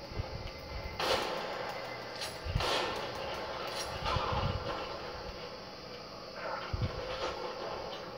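Sharp bangs and thuds sound through a television speaker.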